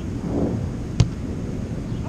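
A ball is struck with a sharp thump.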